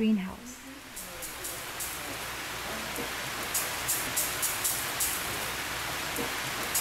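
Water sprays from overhead nozzles with a steady hiss.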